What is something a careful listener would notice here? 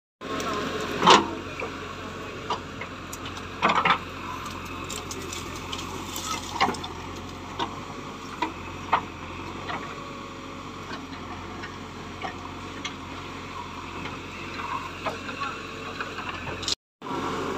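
A digger bucket scrapes and crunches through dry soil and branches.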